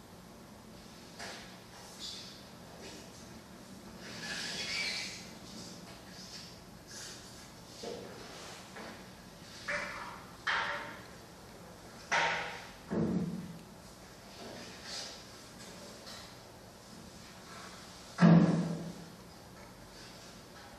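A man reads aloud calmly in a room with some echo.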